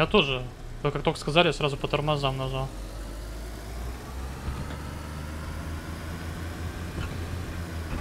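A car engine rumbles steadily as the car drives along.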